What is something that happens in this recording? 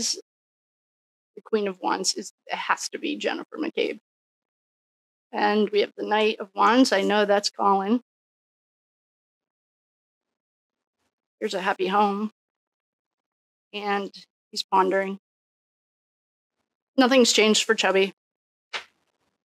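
A woman speaks calmly and warmly into a close microphone.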